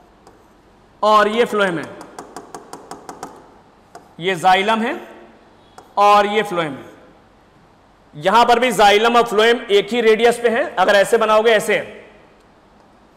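A man lectures with animation into a close microphone.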